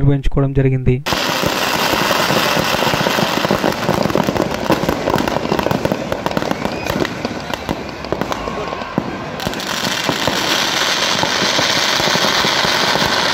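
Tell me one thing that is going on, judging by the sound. Fireworks crackle and bang repeatedly.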